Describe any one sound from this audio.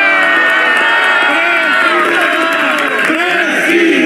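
A crowd applauds.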